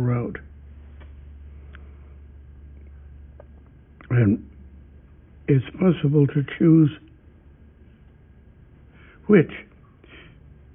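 An elderly man speaks calmly and slowly in short bursts, close to a microphone.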